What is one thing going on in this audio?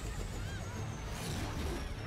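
A helicopter's engine bursts into flames with a roar.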